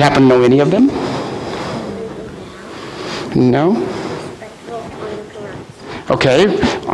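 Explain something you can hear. A man reads aloud calmly in an echoing room.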